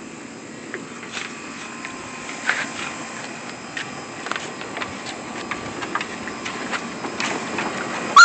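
Dogs scuffle and their paws patter on a wooden deck.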